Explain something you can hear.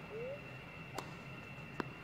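A tennis ball is struck with a sharp pop.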